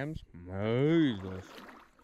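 A paddle splashes in water.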